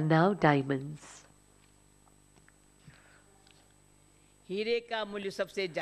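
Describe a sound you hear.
An elderly woman speaks calmly into a microphone, with pauses.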